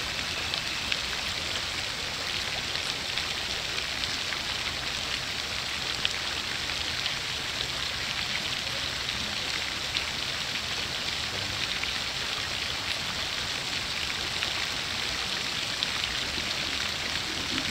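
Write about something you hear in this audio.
A fountain splashes steadily outdoors.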